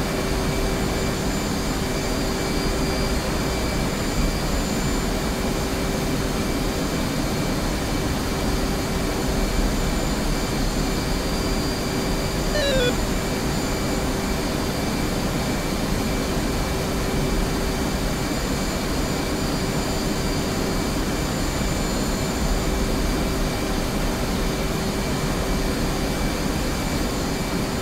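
A jet engine roars and hums steadily.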